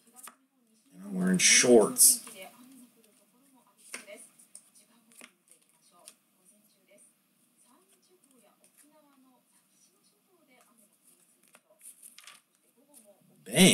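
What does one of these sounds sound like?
Cards slide and shuffle against each other in someone's hands, close by.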